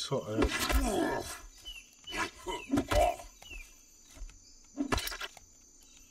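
An axe strikes a creature with heavy thuds.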